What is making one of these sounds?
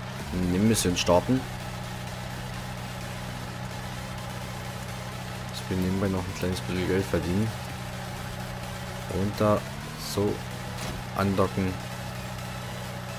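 An engine idles with a steady low hum.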